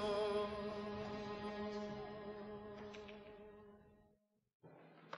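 A horsehead fiddle plays a long, steady bowed note that slowly fades.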